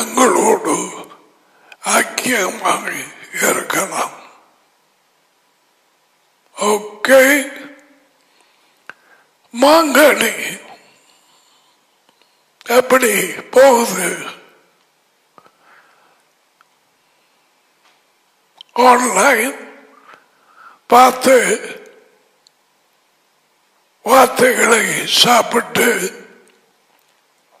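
An elderly man speaks emphatically into a close headset microphone, in short bursts with pauses.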